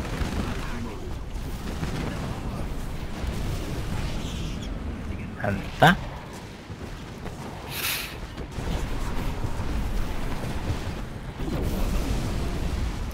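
Battle noise of gunfire and explosions rumbles steadily.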